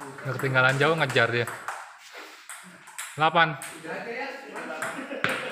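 A ping pong ball clicks back and forth on paddles and a table.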